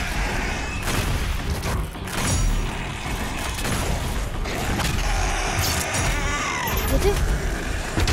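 Gunshots and explosions boom in quick bursts.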